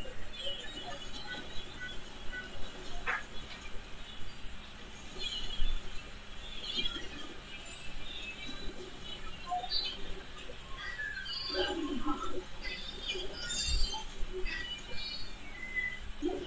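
Game sound effects chime and pop.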